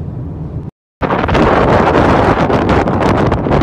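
Wind blows hard outdoors.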